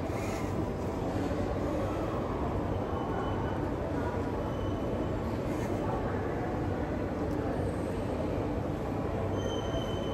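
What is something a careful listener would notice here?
A young man laughs softly nearby.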